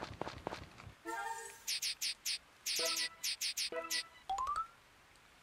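Short bright chimes and blips sound in a quick series.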